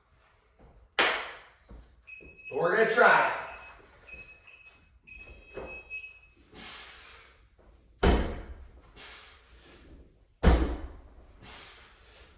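Heavy weight plates clank and thud onto a bar and the floor.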